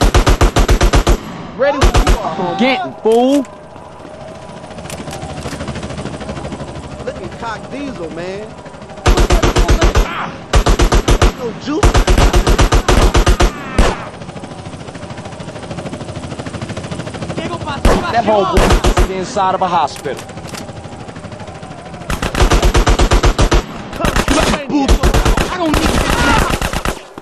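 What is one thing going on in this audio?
Rapid gunfire rattles in loud, quick bursts.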